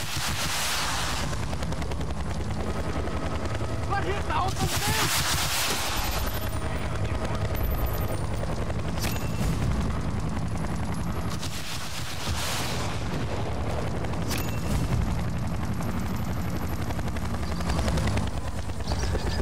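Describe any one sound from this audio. A helicopter's rotor thuds steadily and loudly.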